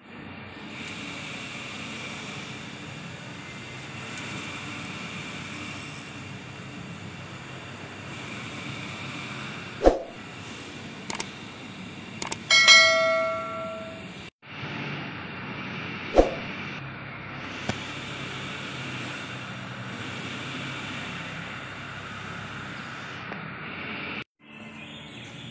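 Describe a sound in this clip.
A conveyor belt machine rumbles and hums steadily.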